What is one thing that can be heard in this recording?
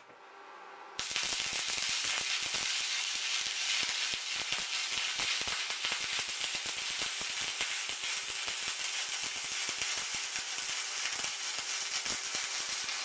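A welder crackles and sizzles steadily as it lays a bead.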